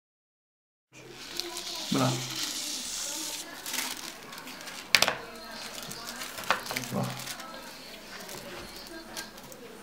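Thin plastic sheeting crinkles under hands.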